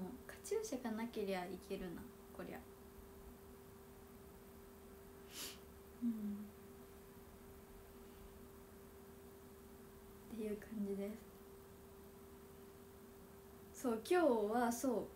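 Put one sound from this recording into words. A young woman speaks playfully and softly close to a microphone, in short bursts.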